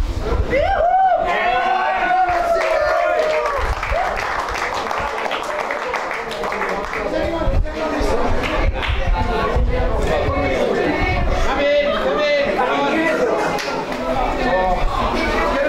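A group of teenage boys sings and shouts loudly together in an echoing room.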